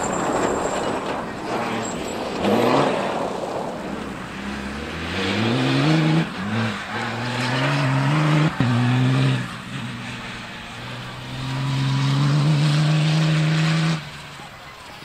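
A rally pickup's engine revs hard through the gears.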